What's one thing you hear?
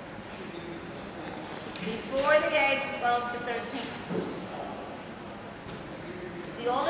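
A woman speaks calmly and clearly in a room with a slight echo.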